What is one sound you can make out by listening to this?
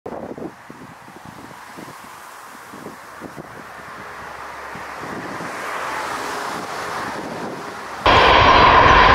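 A jet airliner roars as it lands in gusty wind.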